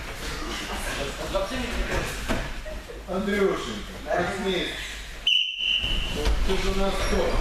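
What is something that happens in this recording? Children talk and call out in a large echoing hall.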